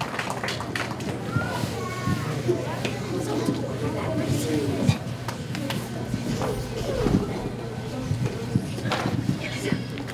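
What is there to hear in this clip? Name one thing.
A young woman speaks into a microphone, heard through loudspeakers in an echoing hall.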